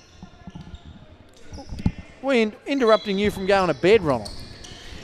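Sneakers squeak on a wooden court floor.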